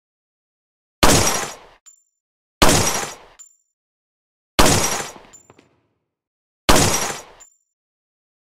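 A pistol fires single shots that echo loudly.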